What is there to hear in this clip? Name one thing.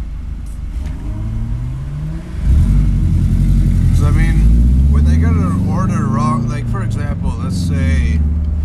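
A car engine revs up and rises in pitch as the car pulls away.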